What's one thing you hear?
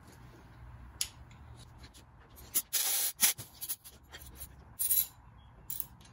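A metal hand tool clicks and scrapes against an engine.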